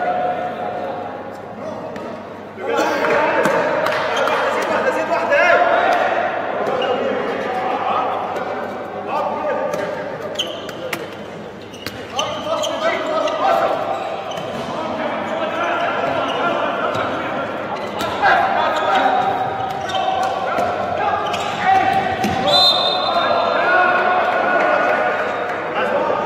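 A handball bounces on a hard court floor.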